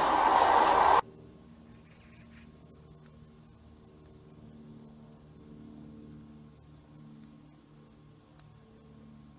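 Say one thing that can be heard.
A small propeller plane drones faintly overhead.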